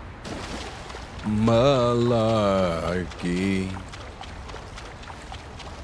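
Water splashes as a figure wades through it.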